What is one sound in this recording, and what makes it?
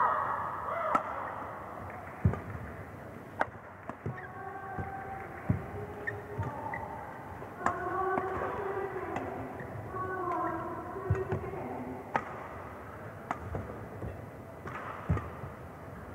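Badminton rackets smack a shuttlecock back and forth in quick sharp hits.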